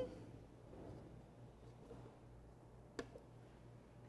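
Fruit pieces tumble into a plastic jug.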